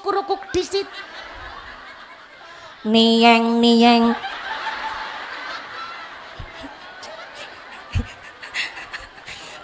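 A young woman speaks with animation through a microphone and loudspeakers.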